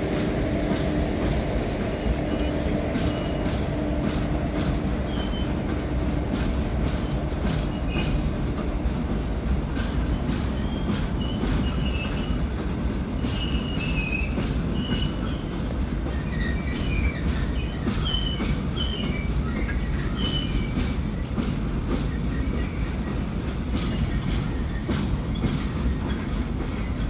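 A long freight train rumbles steadily past, its wheels clattering over the rails.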